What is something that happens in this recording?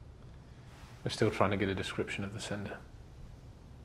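A man speaks calmly and quietly nearby.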